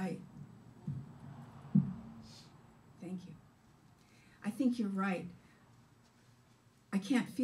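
A woman speaks with expression into a microphone.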